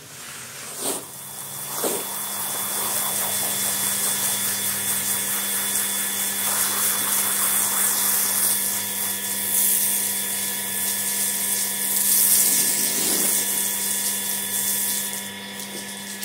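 Water sprays hard from a hose onto a mat, hissing and splashing.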